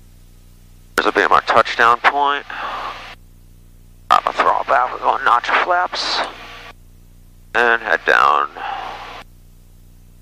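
A young man speaks calmly through a headset microphone.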